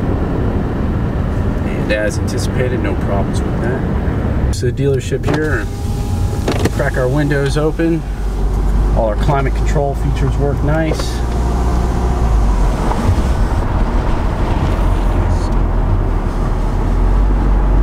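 A car engine hums and tyres rumble on the road from inside the car.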